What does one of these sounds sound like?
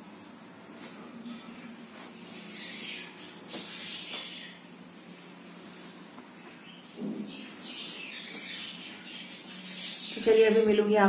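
Cloth rustles as it is handled and folded.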